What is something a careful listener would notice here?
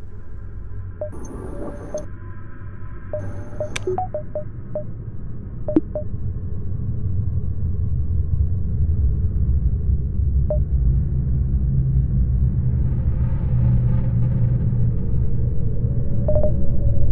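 Short electronic beeps sound as menu options are clicked.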